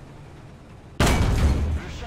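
A shell explodes on impact with a loud blast.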